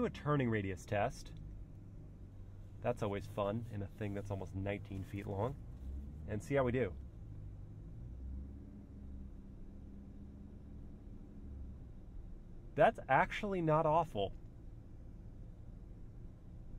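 A car engine hums low and steady while driving slowly.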